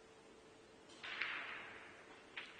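A cue strikes a pool ball with a sharp click in a large quiet hall.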